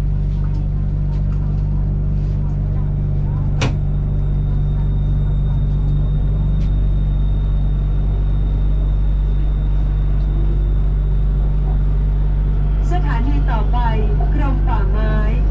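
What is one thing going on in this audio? A train rolls into the station with a deep rumble.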